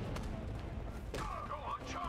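A man shouts a command to charge.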